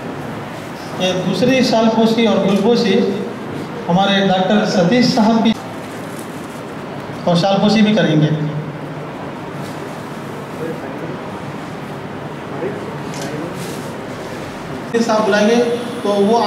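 A man speaks through a microphone and loudspeaker, in short bursts.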